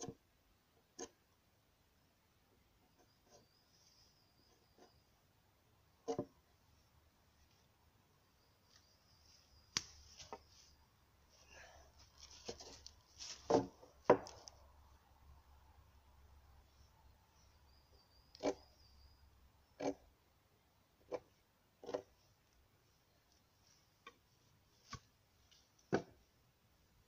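Wooden boards knock and thud against each other.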